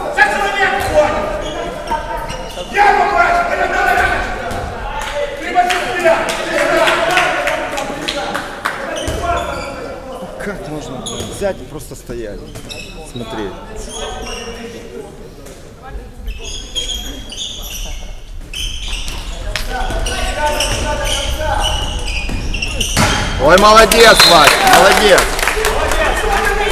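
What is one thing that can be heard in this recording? Players' shoes squeak on a hall floor that echoes.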